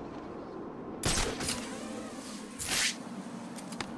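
A loud whoosh sweeps by quickly.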